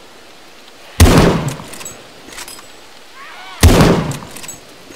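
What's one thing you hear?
A heavy gun fires two loud, booming shots.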